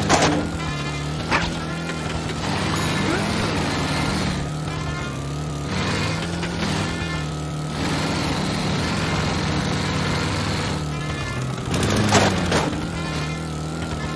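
A small lawnmower engine drones steadily.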